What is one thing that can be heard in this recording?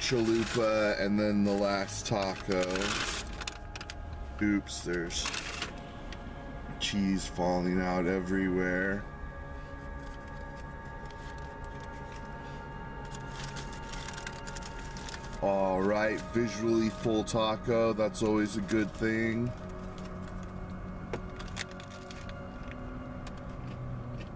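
A paper wrapper rustles.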